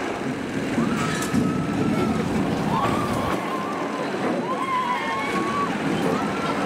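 Riders scream on a roller coaster.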